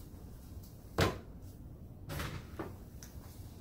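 A plastic rack knocks against a hard surface.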